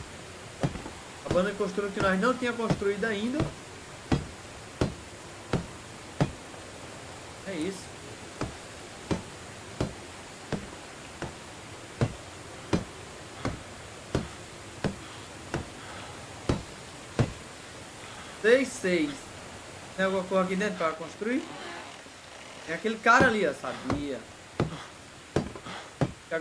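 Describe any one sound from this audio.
Wooden knocks sound at a steady pace as a structure is built.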